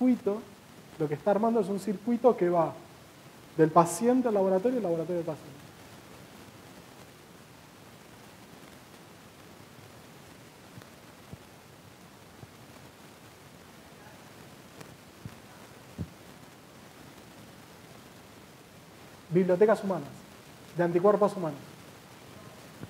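A man speaks with animation in short bursts with long pauses.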